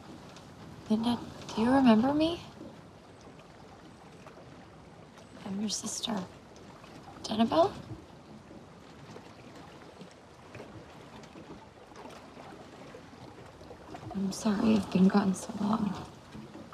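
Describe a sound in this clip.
A young woman speaks quietly and earnestly.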